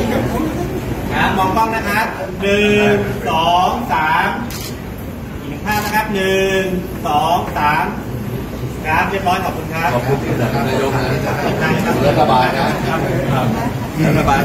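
A middle-aged man speaks loudly with animation close by.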